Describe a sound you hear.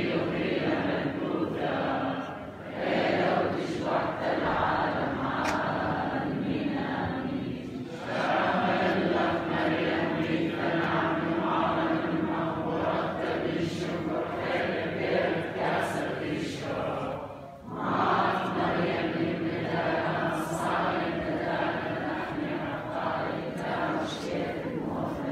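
A large congregation sings together in an echoing hall.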